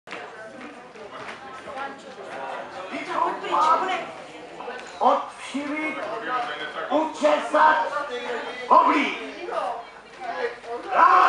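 Adult performers speak and call out loudly and with animation.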